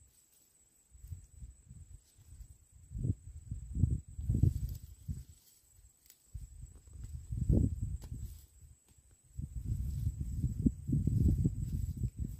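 Soil crunches softly as hands dig in the ground.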